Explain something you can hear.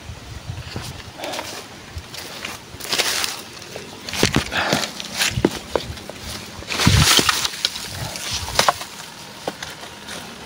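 Footsteps crunch on dry leaves and twigs.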